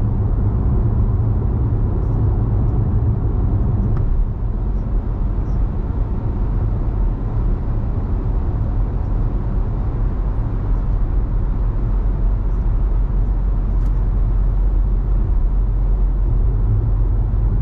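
A car's engine hums and tyres roar steadily on a highway from inside the car.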